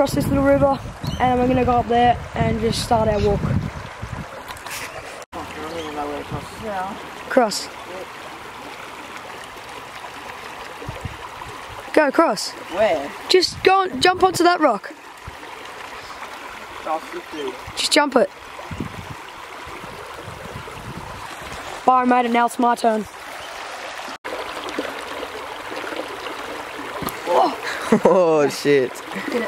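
A shallow stream rushes and babbles over rocks.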